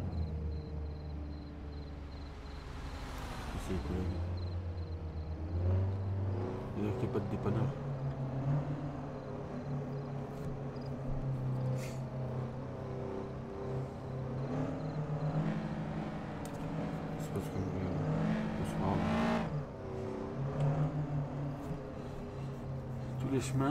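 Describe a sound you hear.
A video-game car engine hums and rises and falls in pitch as the car speeds up and shifts gears.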